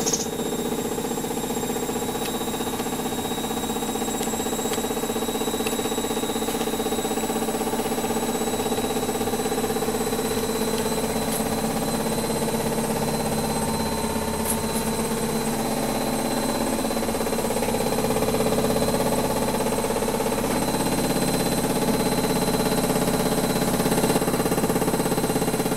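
A washing machine hums and rumbles steadily as its drum turns.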